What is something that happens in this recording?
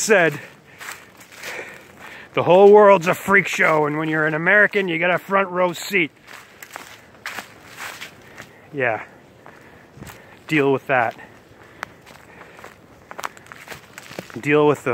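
Footsteps crunch on a leafy dirt trail.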